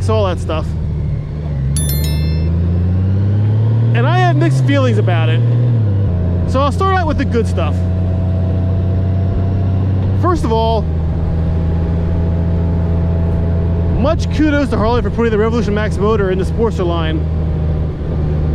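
A motorcycle engine hums steadily and rises in pitch as the bike speeds up.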